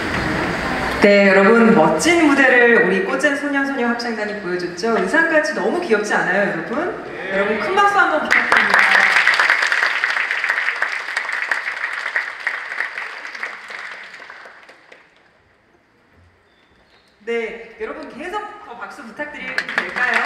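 A young woman speaks warmly into a microphone, heard over loudspeakers in a large hall.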